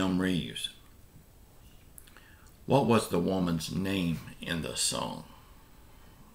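A middle-aged man speaks calmly and close into a microphone.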